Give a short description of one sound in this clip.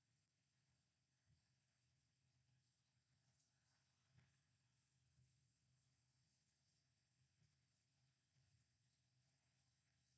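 A fingertip softly taps and rubs against a small circuit board.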